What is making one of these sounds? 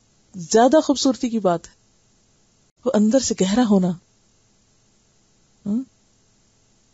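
A woman speaks calmly and closely into a microphone, in short phrases with pauses.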